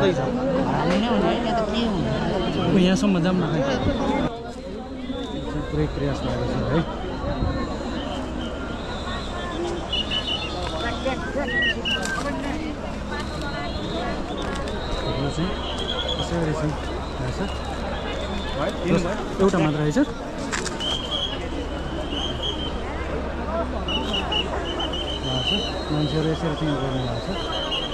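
A large crowd murmurs and calls out in the distance.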